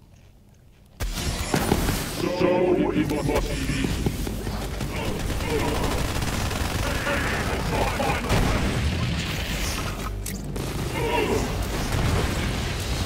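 Guns fire rapidly in a game.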